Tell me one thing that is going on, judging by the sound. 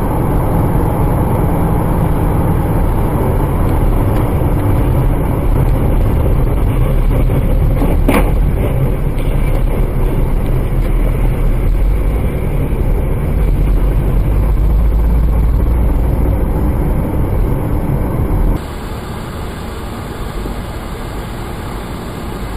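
A car engine hums steadily with loud road rumble.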